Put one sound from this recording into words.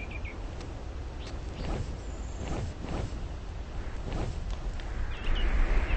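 A large creature's wings beat with heavy whooshes.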